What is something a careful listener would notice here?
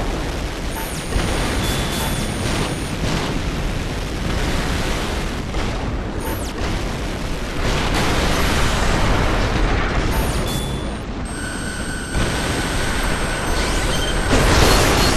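A mech's thrusters roar loudly and steadily.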